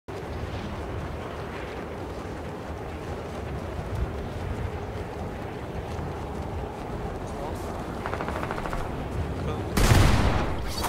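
Wind rushes steadily past during a long fall through the air.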